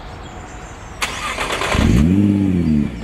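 A car engine cranks and fires up with a loud burst.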